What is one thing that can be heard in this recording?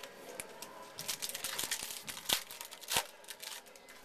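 Paper rustles and taps close by.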